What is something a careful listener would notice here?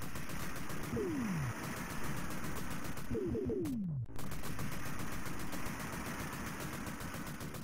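Video game gunfire rattles rapidly.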